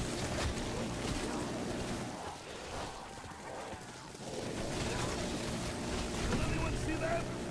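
A rotary machine gun fires in rapid bursts.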